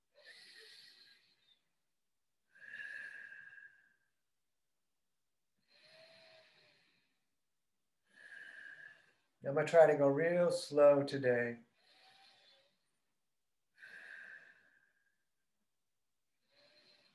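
A man breathes in and out slowly and deeply.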